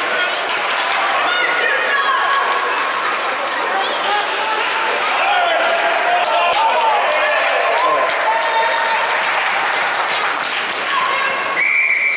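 Young players shout across the ice.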